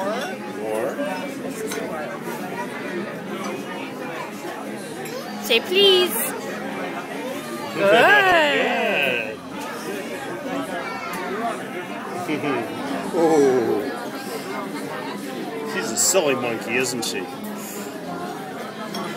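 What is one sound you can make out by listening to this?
Many people chatter in a busy, noisy room.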